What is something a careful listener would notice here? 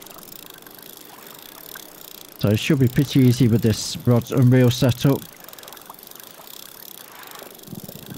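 A fishing reel's drag whirs softly as line pays out.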